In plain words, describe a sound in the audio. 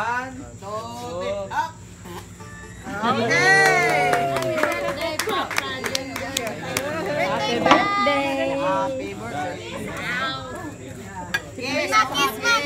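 A group of adults and children talk and laugh excitedly nearby.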